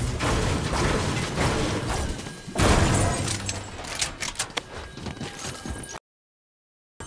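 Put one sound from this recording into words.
A pickaxe strikes a metal wall with sharp clangs.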